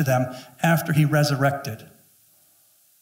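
A middle-aged man speaks with animation through a microphone in a large room.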